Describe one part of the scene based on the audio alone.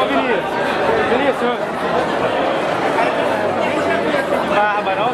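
A crowd of people chatters loudly nearby, with many voices overlapping.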